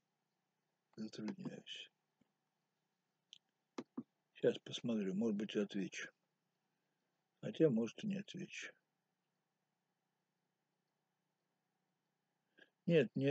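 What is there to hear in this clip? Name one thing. An elderly man speaks calmly and slowly, close to the microphone, with long pauses.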